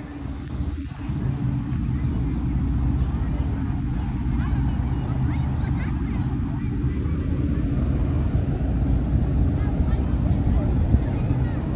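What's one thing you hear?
A ship's engine hums low and steady nearby.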